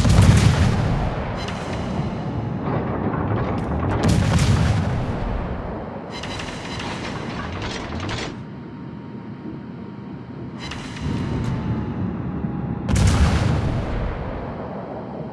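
Naval guns fire in deep booming blasts.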